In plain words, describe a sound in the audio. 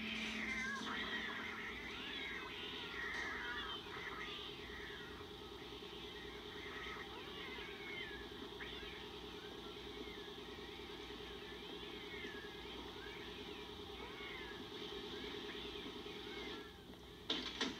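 Cats meow repeatedly.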